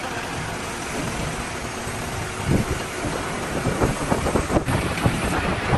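A crane engine rumbles steadily.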